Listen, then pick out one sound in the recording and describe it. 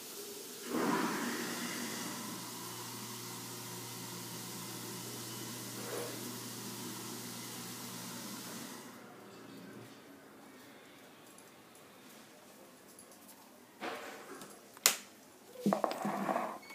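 A cat's paws patter softly on a wooden floor.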